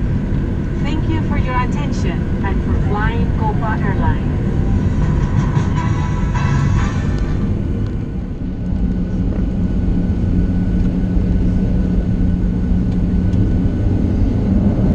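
A jet engine roars steadily from inside an aircraft cabin.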